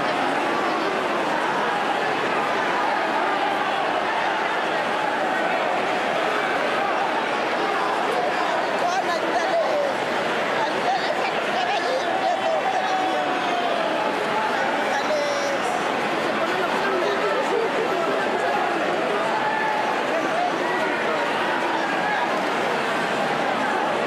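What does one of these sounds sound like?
A large crowd chatters and shouts loudly all at once, echoing in a big hall.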